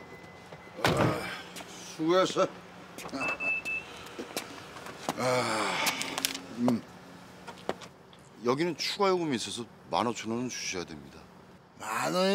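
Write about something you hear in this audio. A middle-aged man speaks calmly, close by.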